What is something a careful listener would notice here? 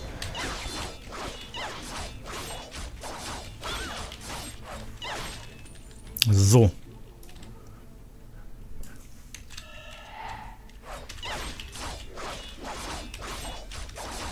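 Game sword strikes clash and whoosh.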